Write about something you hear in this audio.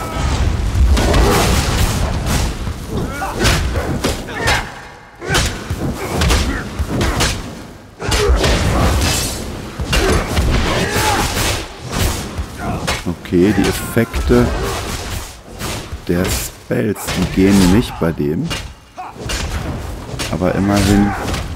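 Magic blasts burst with loud whooshing bangs.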